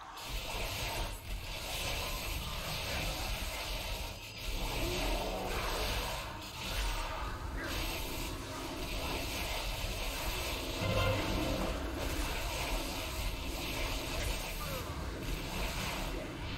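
Magic spells crackle and whoosh in a busy battle.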